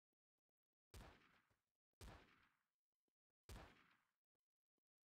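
Single gunshots crack, spaced apart, with a short echo.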